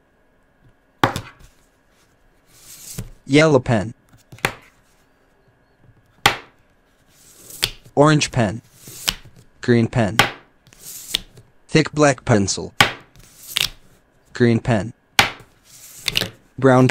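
Plastic markers clack as they are set down on a table.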